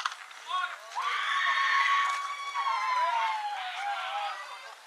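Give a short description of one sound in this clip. Young girls cheer and scream excitedly after the hit.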